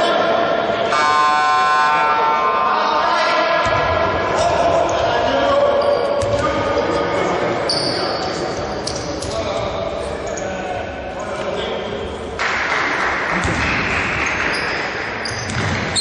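Players' footsteps thud on the wooden floor.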